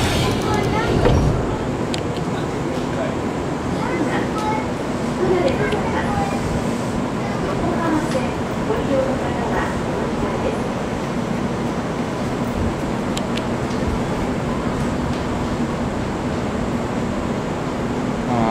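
A stopped train hums steadily beside a platform.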